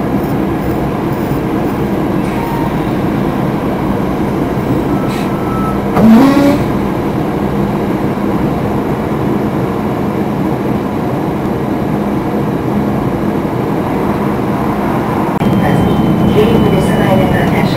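A vehicle's engine hums steadily as it drives along a road.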